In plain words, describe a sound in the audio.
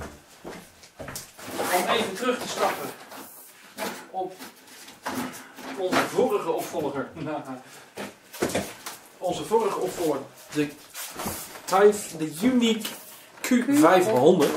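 Hands rub and tap against a cardboard box.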